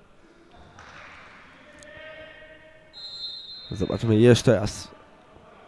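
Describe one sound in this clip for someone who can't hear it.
Shoes squeak and patter on a hard indoor court.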